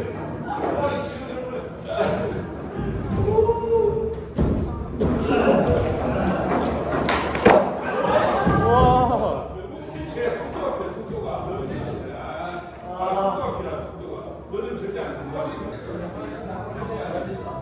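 Young men talk with animation nearby.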